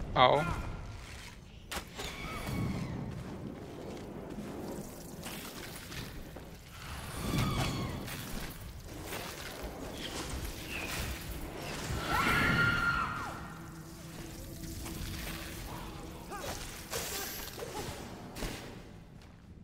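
Heavy blows and crackling magic blasts crash during a fight with a large creature.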